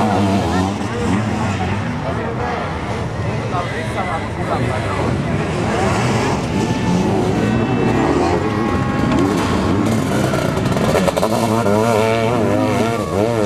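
A sidecar motocross outfit's engine revs hard as it races around the track.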